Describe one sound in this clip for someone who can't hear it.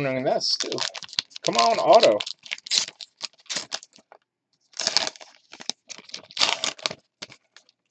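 A foil card pack crinkles as it is torn open.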